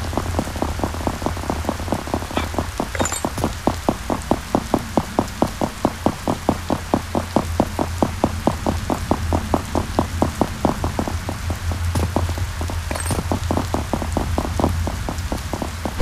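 Quick footsteps thud steadily on hard ground.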